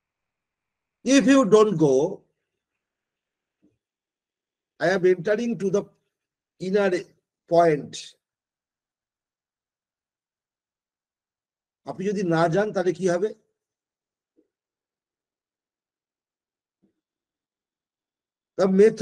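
An older man speaks calmly over an online call, in short phrases with pauses.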